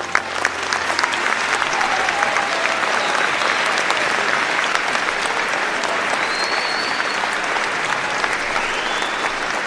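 A large crowd claps and cheers in a big echoing hall.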